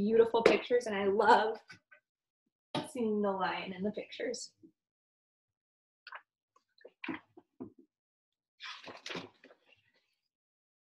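A young woman reads aloud expressively, close to a microphone.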